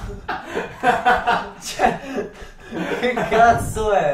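A teenage boy laughs close by.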